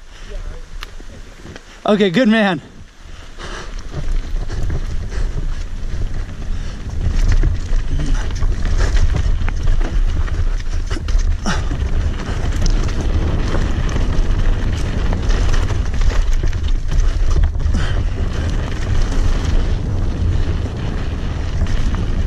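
A bicycle frame rattles over bumps and rocks.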